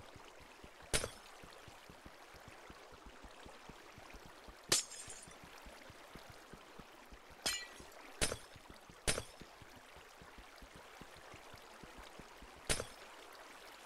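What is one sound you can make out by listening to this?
Glass shatters sharply, several times.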